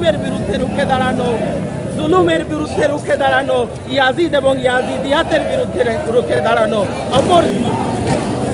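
Men chant loudly together in a procession, close by, outdoors.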